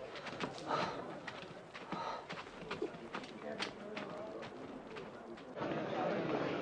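Footsteps shuffle and scuffle as men jostle.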